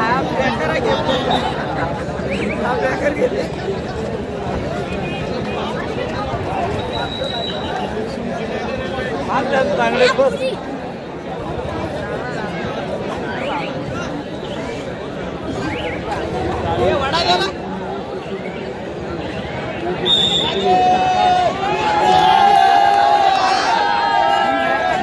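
A large crowd of spectators cheers and shouts in a large echoing arena.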